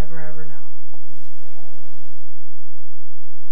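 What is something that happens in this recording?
A magical swirling whoosh sounds.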